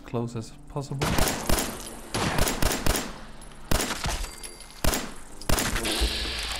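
A pistol fires a series of loud shots.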